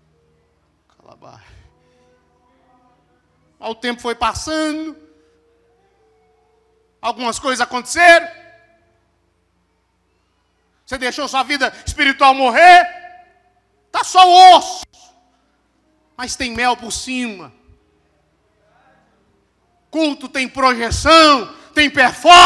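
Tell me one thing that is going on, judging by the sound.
A man preaches with animation into a microphone through loudspeakers, in bursts with pauses, in a large echoing hall.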